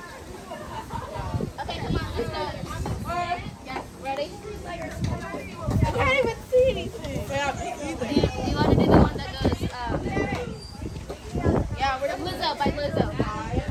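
Young girls chatter and call out with animation outdoors.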